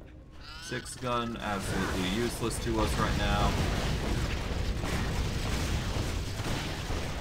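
Magic spells blast and crackle in a fight.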